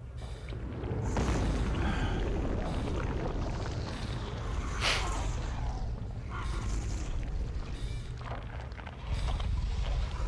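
A huge creature rumbles and roars in a large echoing hall.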